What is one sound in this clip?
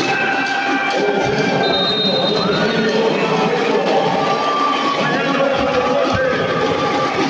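A large crowd cheers and shouts loudly in an echoing arena.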